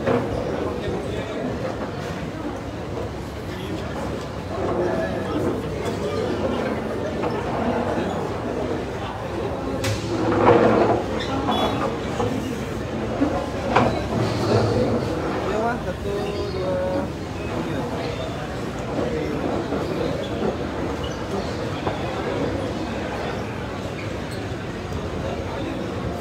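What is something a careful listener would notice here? A crowd of men and women chatter all around in an echoing hall.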